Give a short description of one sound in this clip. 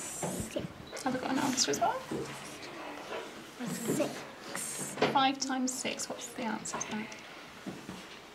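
Young children talk quietly nearby.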